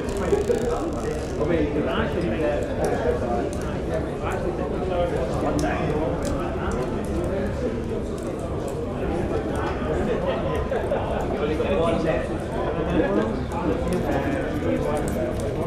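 A fire crackles in a hearth.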